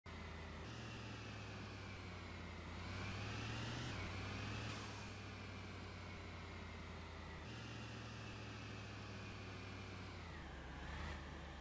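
A car engine hums steadily and rises and falls in pitch as it speeds up and shifts gears.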